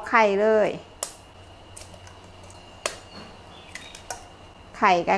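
An eggshell taps and cracks against the rim of a metal bowl.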